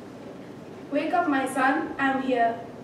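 A young woman speaks loudly and dramatically.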